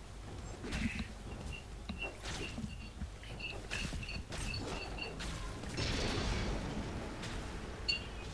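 Spell effects crackle and burst during a fight.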